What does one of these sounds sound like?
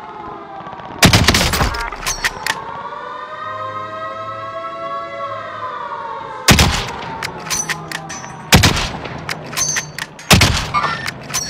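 A sniper rifle fires sharp, loud shots that echo.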